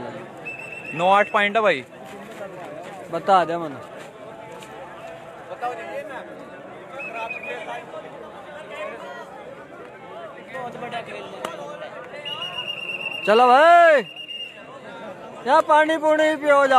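Men shout loudly nearby.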